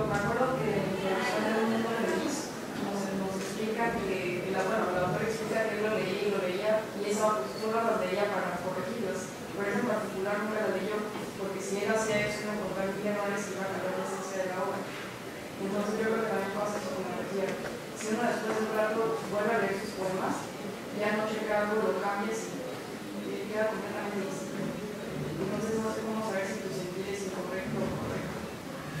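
A man speaks calmly into a microphone in a large room with a slight echo.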